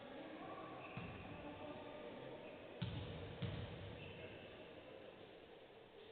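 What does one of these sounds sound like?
A basketball bounces on a wooden court with hollow thumps in a large echoing hall.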